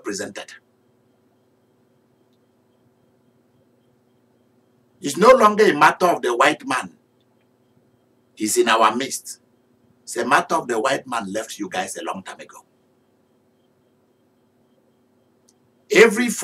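A man speaks with animation into a close microphone, pausing between phrases.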